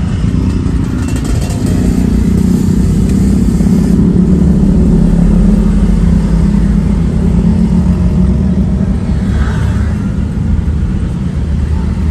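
Traffic rumbles along a busy road nearby.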